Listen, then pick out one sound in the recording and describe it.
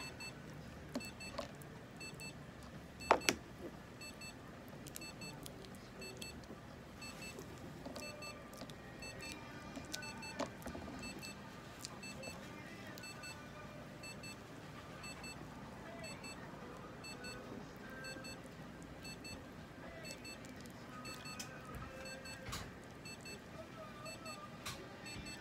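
Light knocks and taps sound as a small animal is handled.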